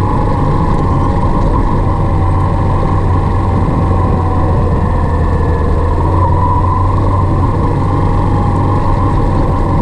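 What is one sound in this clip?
Wind rumbles loudly against the rider.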